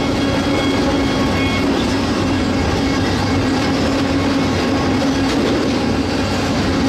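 A locomotive engine drones loudly and steadily up close.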